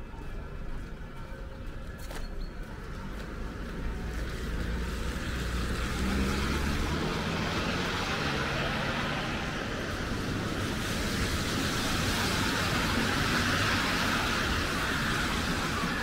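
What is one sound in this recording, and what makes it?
Traffic rumbles along a nearby city street.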